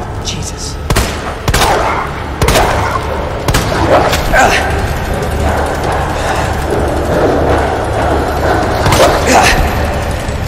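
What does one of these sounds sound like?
Gunshots ring out, echoing sharply.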